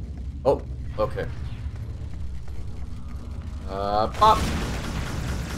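A man talks with animation close to a headset microphone.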